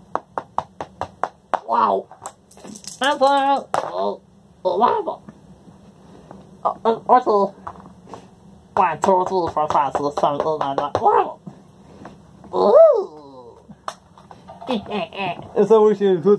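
Small game pieces click on a board.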